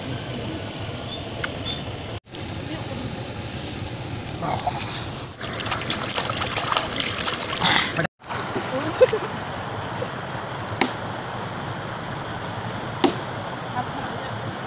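A shallow stream flows steadily.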